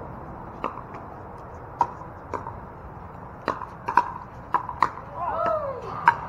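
Paddles pop sharply against a plastic ball outdoors.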